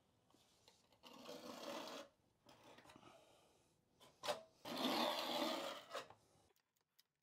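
Masking tape crackles as a hand presses it down.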